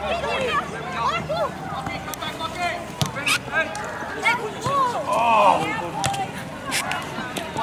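Young players shout to each other across an open pitch.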